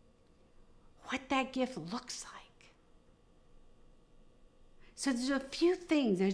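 A woman speaks calmly and expressively into a close microphone, with pauses between phrases.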